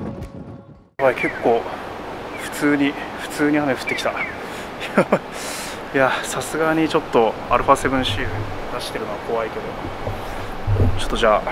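A young man speaks calmly close by.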